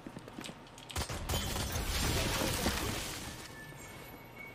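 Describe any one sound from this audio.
A loud magical blast whooshes and crackles.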